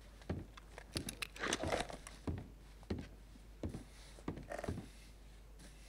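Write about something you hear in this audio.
Boots thud on a wooden floor at a walking pace.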